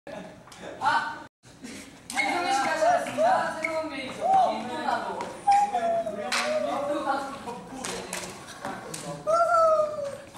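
Young men laugh and talk playfully close by.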